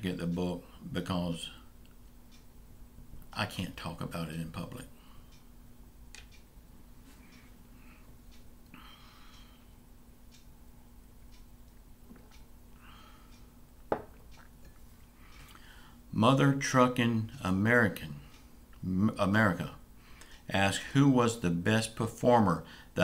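A middle-aged man speaks calmly and close into a microphone, pausing now and then.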